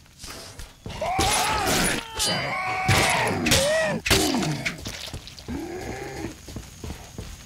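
A monster lets out loud, warbling screeches and groans.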